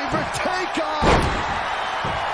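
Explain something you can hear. A body slams down hard onto a wrestling ring mat with a heavy thud.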